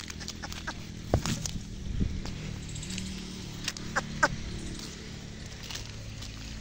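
A donkey tears and munches grass close by.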